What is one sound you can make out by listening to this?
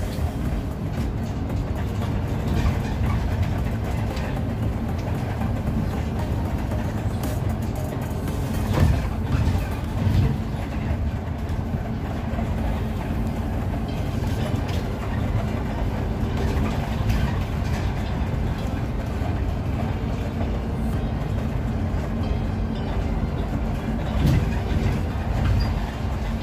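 A bus engine hums steadily while the bus drives along a street.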